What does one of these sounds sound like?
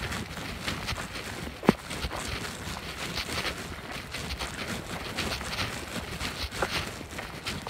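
Footsteps crunch on dry leaves along a forest path.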